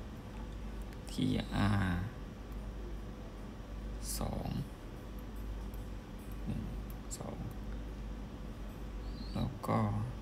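Small buttons click softly under a finger.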